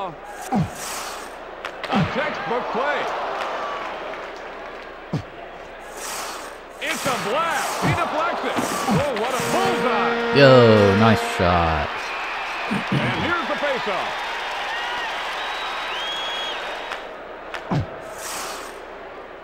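Skates scrape and a puck clacks in a video game.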